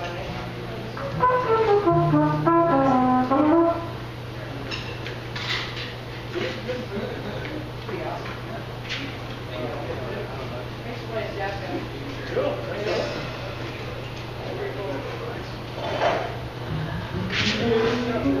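A saxophone plays a melody.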